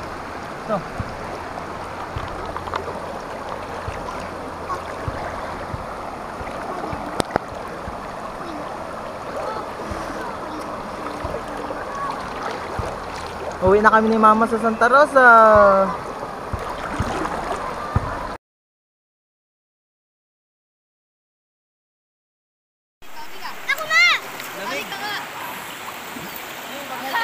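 A stream rushes and splashes steadily nearby.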